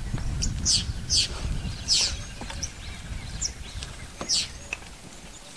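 A small bird gives sharp hissing calls close by.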